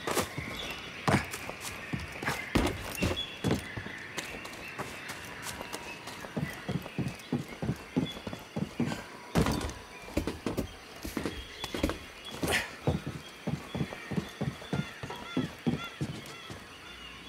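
Running footsteps thud quickly on grass and clang on metal grating.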